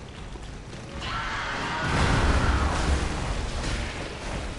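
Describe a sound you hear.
A monster roars loudly in a large echoing hall.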